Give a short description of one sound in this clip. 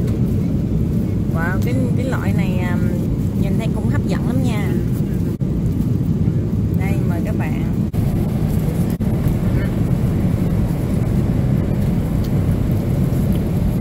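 An aircraft cabin hums steadily with a low roar.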